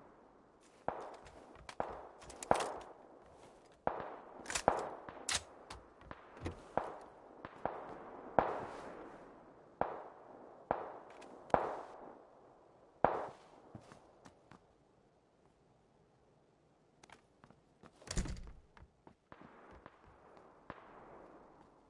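Footsteps thud on a wooden floor indoors.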